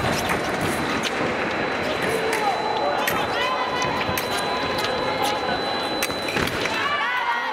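Fencing blades clash and click.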